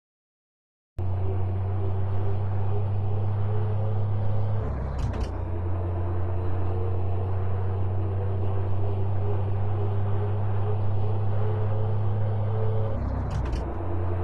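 A truck engine hums steadily as it drives along.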